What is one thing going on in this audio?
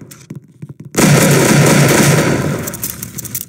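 A shotgun blasts loudly.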